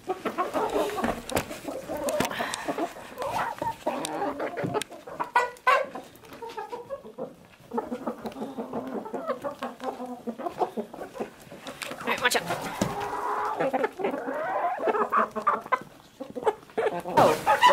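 Hens peck and scratch at food close by.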